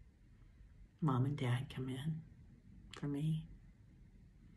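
A middle-aged woman speaks calmly and warmly, close to the microphone.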